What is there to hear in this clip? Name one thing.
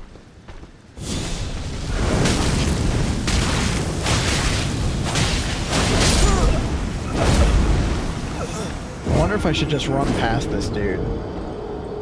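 Heavy blows and magical blasts crash loudly in a game battle.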